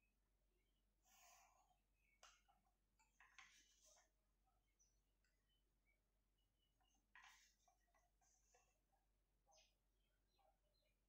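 A plastic ruler slides and taps on paper.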